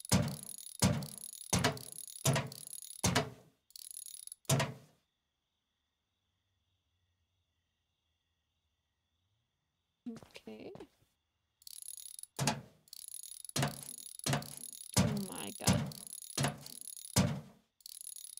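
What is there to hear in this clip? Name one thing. A power wrench whirs in short, repeated bursts.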